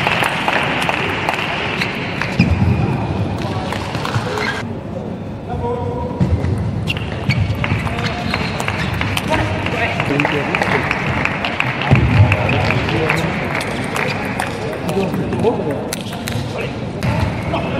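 A ping-pong ball clicks rapidly back and forth off paddles and a table.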